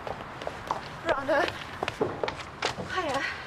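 A young man speaks with surprise.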